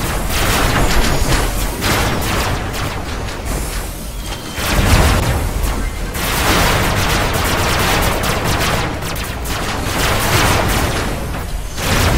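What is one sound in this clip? Laser weapons fire in rapid bursts.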